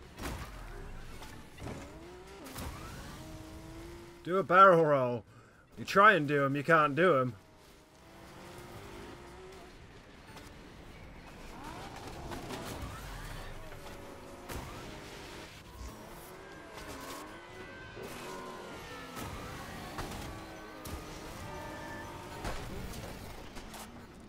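A game vehicle's engine hums and revs steadily.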